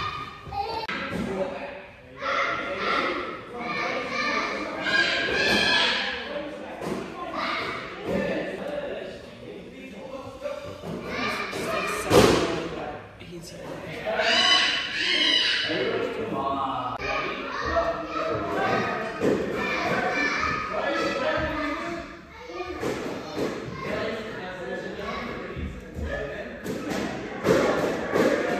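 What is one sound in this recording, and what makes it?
Young children shout.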